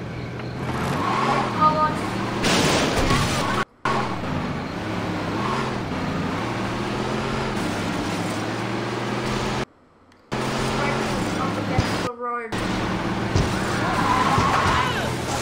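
A van's engine drones as it drives along a road.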